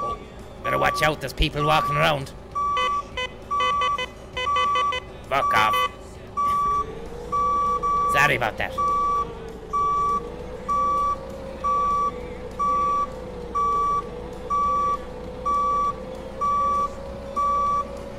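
A forklift engine hums.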